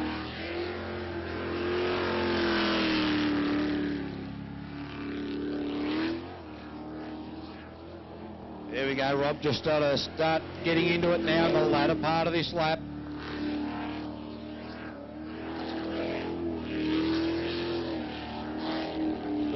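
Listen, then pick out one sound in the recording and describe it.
A jet boat engine roars loudly, rising and falling as the boat races and turns.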